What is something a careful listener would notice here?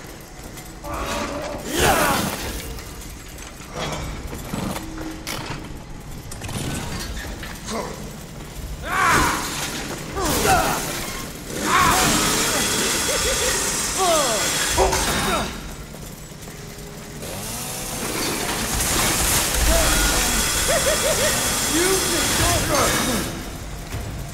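A chainsaw engine roars and revs in bursts.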